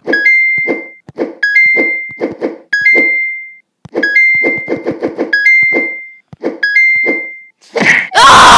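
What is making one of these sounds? A bright chime rings each time a point is scored in a game.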